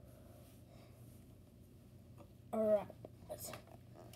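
A plastic toy gun is picked up off a soft cover.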